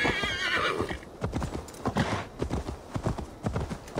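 A horse's hooves thud at a steady gallop.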